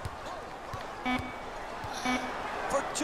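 A buzzer sounds in short blasts.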